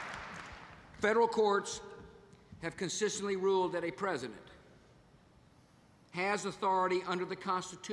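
A middle-aged man speaks firmly into a microphone over loudspeakers.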